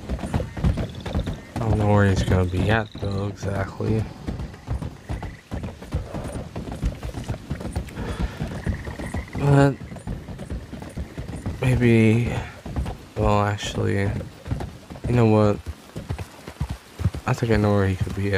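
Horse hooves clop steadily on wooden planks.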